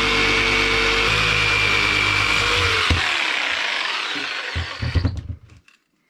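A jigsaw buzzes loudly, cutting through wood, then winds down.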